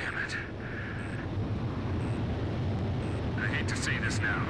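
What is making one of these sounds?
A warning alarm beeps repeatedly.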